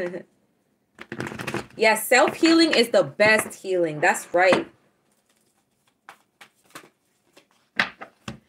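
Playing cards riffle and tap as they are shuffled.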